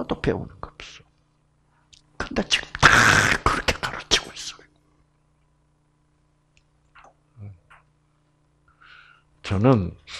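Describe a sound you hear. An elderly man speaks with animation through a headset microphone.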